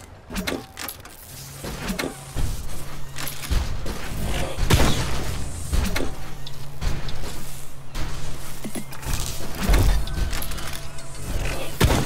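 Short electronic chimes and whooshes sound as game pieces match and clear.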